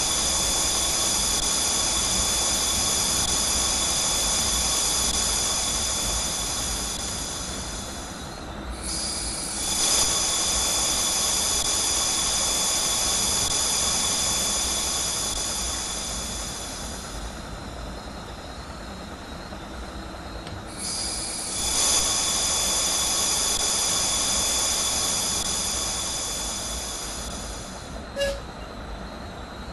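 Wheels hum and whine on the track.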